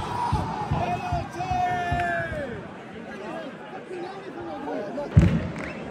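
A football crowd sings and chants loudly in a large open stadium.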